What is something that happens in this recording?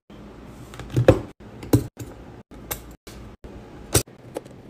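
Keycaps clack as they are pressed onto a keyboard.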